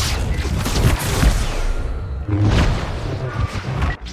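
Blaster shots zap and bang.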